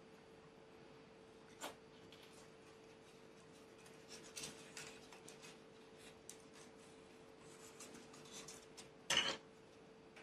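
Light wooden sticks tap and click.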